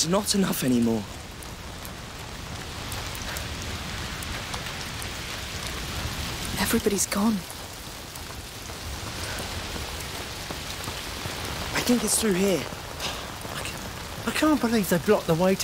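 Footsteps run across wet ground.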